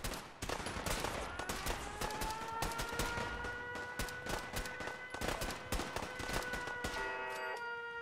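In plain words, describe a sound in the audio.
A laser rifle fires rapid crackling shots.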